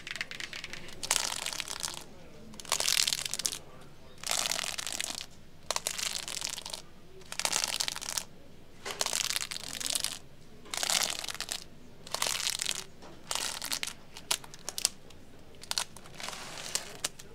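Record sleeves rustle and slide as fingers flip through a stack of vinyl records.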